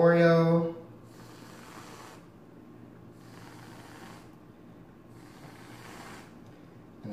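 A whipped cream can hisses as cream sprays out in short bursts.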